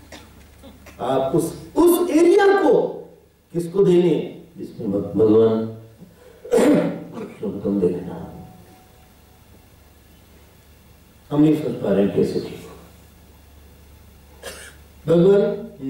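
A man speaks calmly and with expression into a microphone, with pauses.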